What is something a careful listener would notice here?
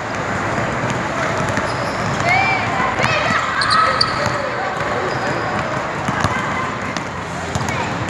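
Children shout and chatter in a large echoing hall.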